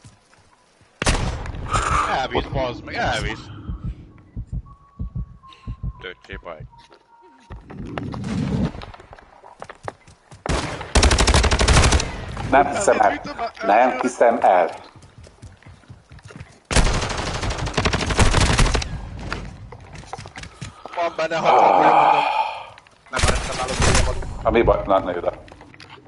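An automatic rifle fires in loud rapid bursts.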